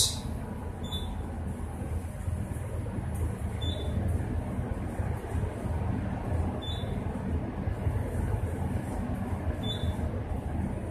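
An elevator beeps softly as it passes each floor.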